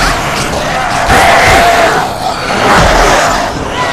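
Blows thud in a close struggle.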